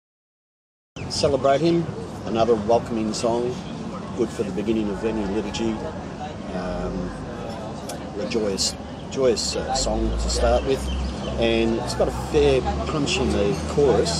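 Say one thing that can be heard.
A middle-aged man talks calmly and steadily, close to a microphone.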